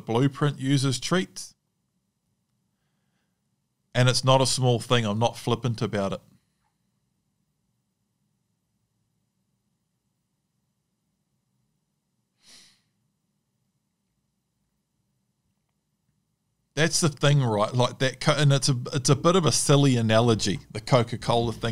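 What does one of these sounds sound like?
A man talks calmly and close into a microphone, with pauses between phrases.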